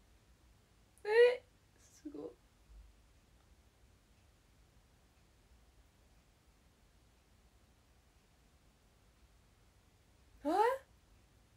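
A young woman speaks briefly in short rising exclamations, close by.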